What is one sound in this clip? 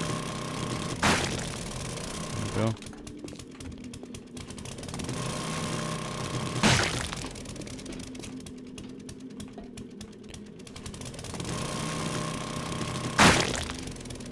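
A heavy weapon strikes a body with a loud wet thud.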